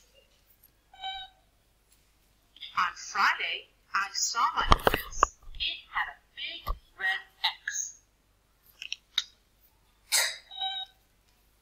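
A robot gives short electronic beeps.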